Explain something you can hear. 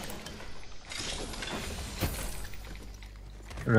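Footsteps thud quickly across a hard metal floor.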